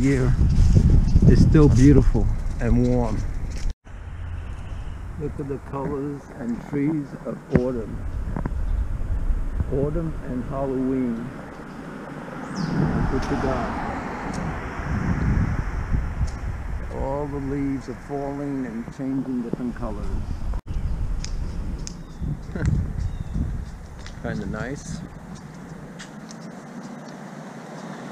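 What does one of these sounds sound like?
Footsteps walk along a pavement outdoors.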